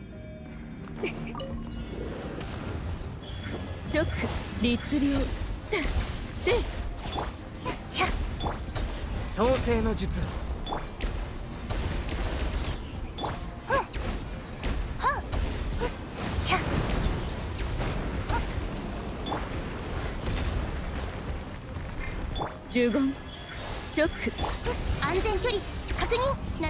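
Game battle effects crackle with electric zaps and impacts.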